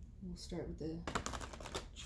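A card slides onto a table.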